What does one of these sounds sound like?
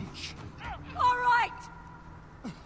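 A young woman answers sharply.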